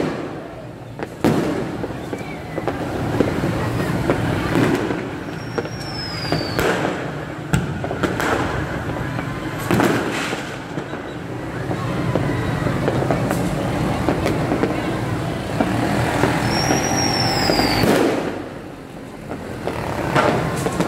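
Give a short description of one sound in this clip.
Motorbikes rumble along a wet street.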